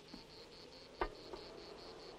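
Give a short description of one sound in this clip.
A wooden window frame knocks once.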